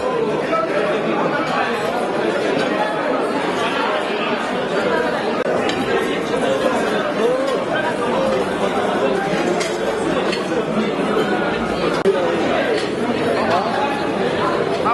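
A crowd of men and women chatters loudly all around.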